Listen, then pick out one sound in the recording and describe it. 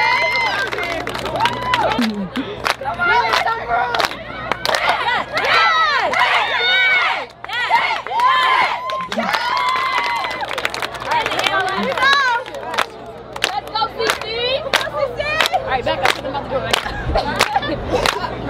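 Young women clap their hands in a steady rhythm.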